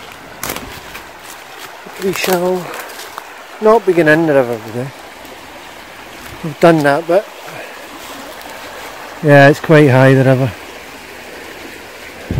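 A shallow stream rushes and gurgles over stones.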